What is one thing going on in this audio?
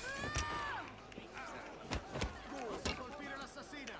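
Punches thud in a scuffle.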